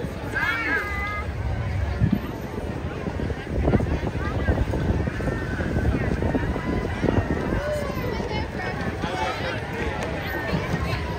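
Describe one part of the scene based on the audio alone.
A crowd of people chatters outdoors along a street.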